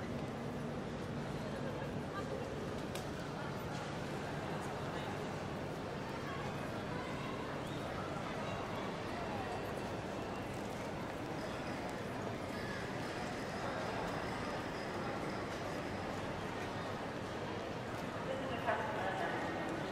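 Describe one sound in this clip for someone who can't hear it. A distant crowd murmurs in a large echoing hall.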